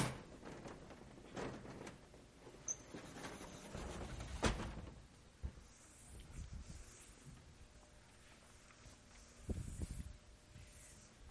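A felt eraser rubs and swishes across a chalkboard.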